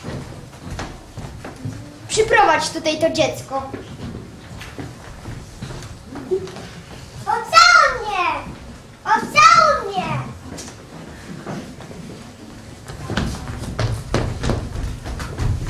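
Footsteps thump on a wooden floor.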